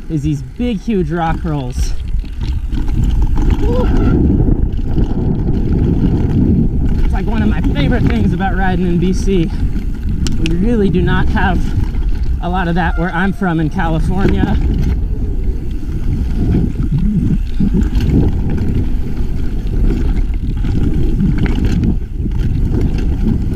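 A bike's frame and chain rattle over bumps.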